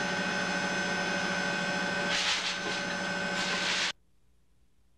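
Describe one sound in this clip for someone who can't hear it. Machinery hums steadily in an enclosed cabin.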